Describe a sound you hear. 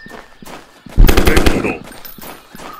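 A rifle fires a loud, rapid burst of shots.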